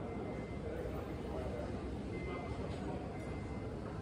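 A glass is set down on a table with a light knock.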